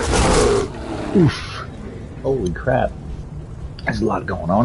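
A large cat snarls and growls.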